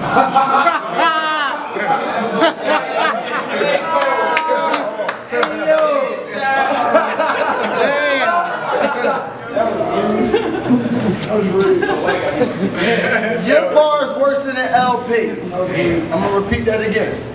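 A young man raps loudly and with animation at close range.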